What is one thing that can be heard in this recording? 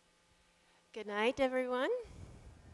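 A young woman speaks loudly into a microphone.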